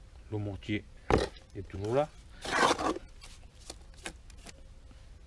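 A trowel scrapes and clinks against wet mortar.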